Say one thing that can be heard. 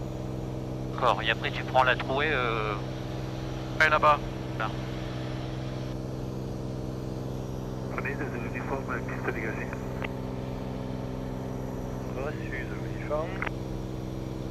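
A man speaks calmly over a headset intercom, with short pauses.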